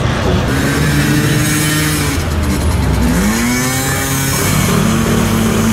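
A powerful car engine revs loudly and rumbles as the car drives past close by.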